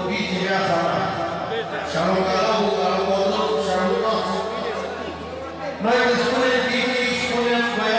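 Several men talk loudly over one another, close by.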